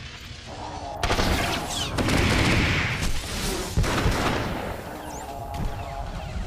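Energy blades hum and clash in a fight.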